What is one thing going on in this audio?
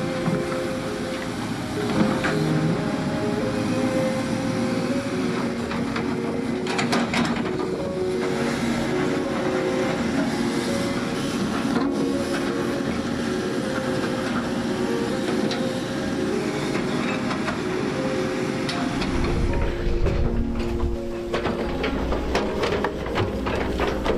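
A heavy excavator engine rumbles steadily.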